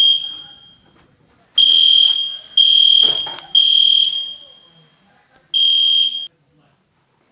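An alarm keypad beeps loudly several times.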